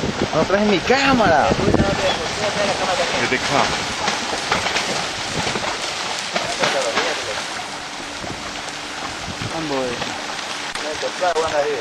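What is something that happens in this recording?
Water splashes and churns as many fish leap at the surface.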